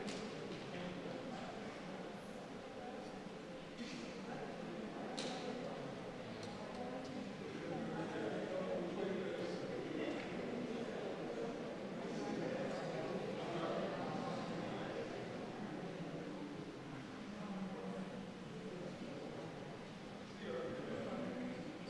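A crowd of men and women murmur and chat nearby.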